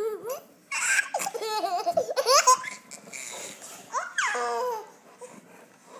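A baby squeals and babbles loudly close by.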